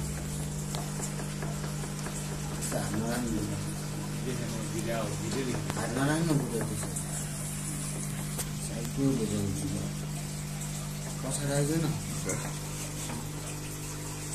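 An aquarium filter hums steadily.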